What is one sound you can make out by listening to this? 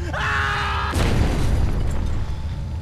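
An explosion booms with a deep rumble.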